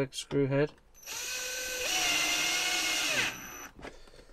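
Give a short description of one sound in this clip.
A cordless drill whirs steadily, then winds down.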